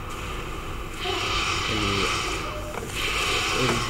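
Flames roar and hiss from a flamethrower.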